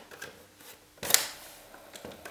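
A button on a cassette player clicks down.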